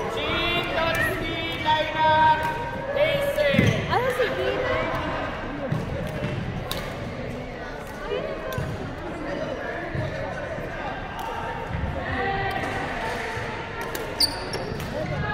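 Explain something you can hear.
Shuttlecocks are hit with rackets with sharp pops.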